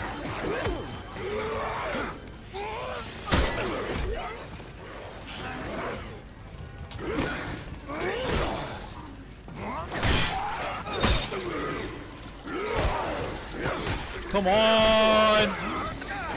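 Heavy blows and thuds strike flesh.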